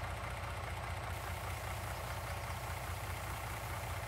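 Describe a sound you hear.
A truck's tipper bed whines as it lifts.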